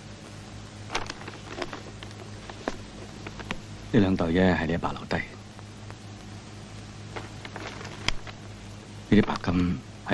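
Paper envelopes rustle and crinkle.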